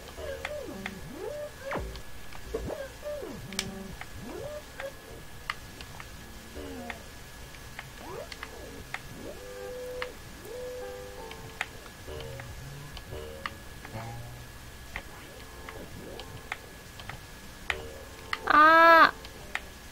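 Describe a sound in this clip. Short game sound effects blip and click.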